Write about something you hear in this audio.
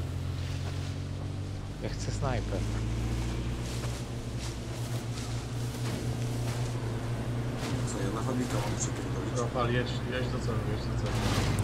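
A car engine hums steadily as the car drives over rough ground.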